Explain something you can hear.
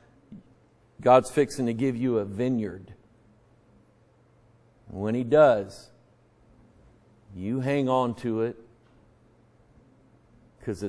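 A middle-aged man preaches with animation into a microphone, in short bursts with pauses.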